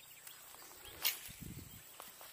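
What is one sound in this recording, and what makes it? A fishing rod swishes through the air as a line is cast.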